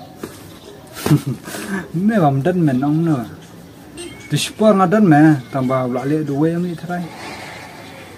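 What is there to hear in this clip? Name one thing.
A young man sings close by.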